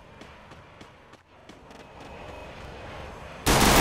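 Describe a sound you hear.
A gun fires a single shot.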